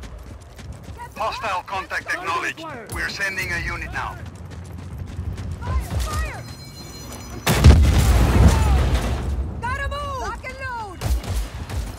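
A rocket launcher fires with a sharp whoosh.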